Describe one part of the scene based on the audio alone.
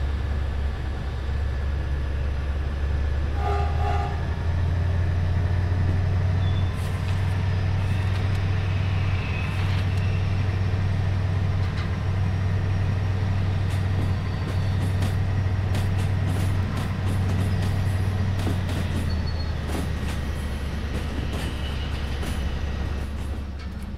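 A diesel locomotive engine rumbles with a low, steady drone.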